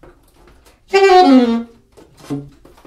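An alto saxophone blows a short, loud note that slides downward.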